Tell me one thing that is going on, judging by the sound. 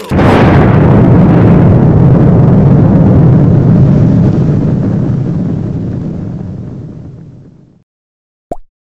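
A loud explosion booms and rumbles, slowly fading away.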